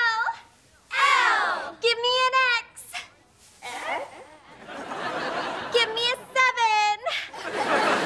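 A group of girls chant loudly in unison.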